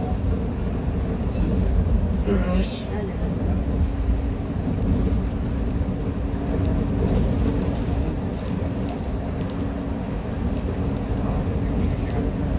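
The bus cabin rattles and clicks as it rolls along the road.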